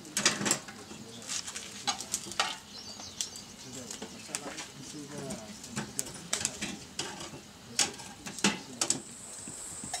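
Firewood knocks and clatters.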